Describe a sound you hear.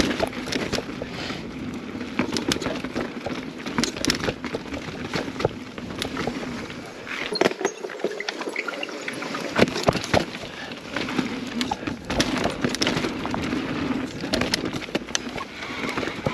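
A mountain bike rattles and clatters over rocks and roots.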